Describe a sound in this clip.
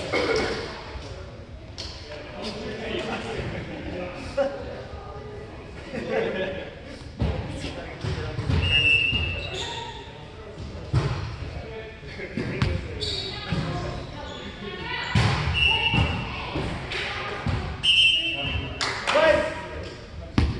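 Several young men talk casually together in a large echoing hall.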